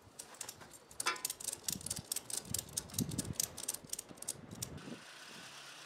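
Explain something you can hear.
Metal clicks and rattles rapidly.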